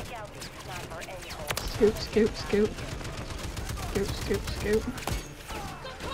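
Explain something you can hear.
A mounted heavy machine gun fires in rapid bursts.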